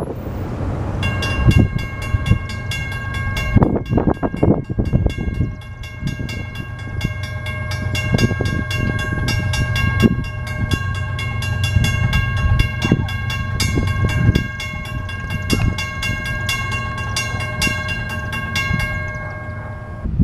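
A crossing bell rings rapidly and steadily.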